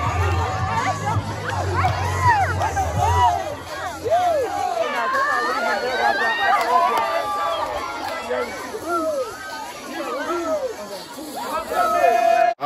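A large crowd shouts and cheers loudly close by.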